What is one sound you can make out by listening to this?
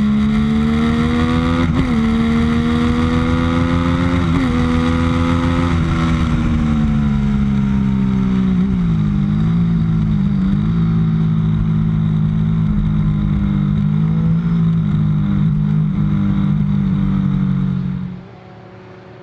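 A motorcycle engine roars up close, its pitch rising and dipping with gear changes.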